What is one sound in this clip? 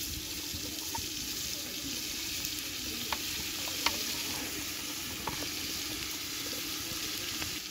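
Cauliflower pieces drop with soft thuds into a pot of water.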